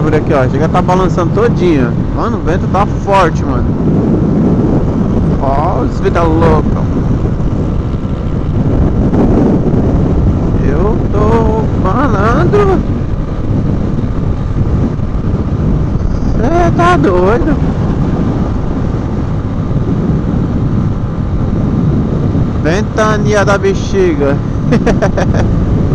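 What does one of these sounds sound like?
A motorcycle engine hums steadily and revs up and down.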